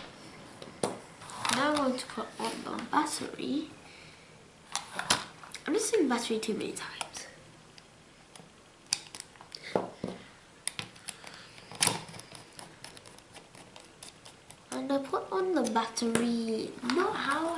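Plastic parts knock and click as they are handled.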